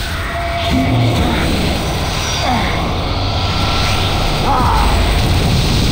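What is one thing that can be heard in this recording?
A magical burst whooshes and crackles.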